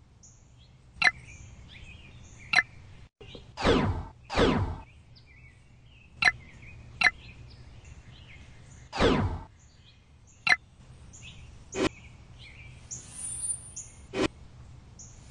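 Short clicks tap now and then.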